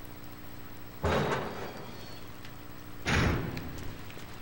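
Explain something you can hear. A heavy door opens with a loud thud.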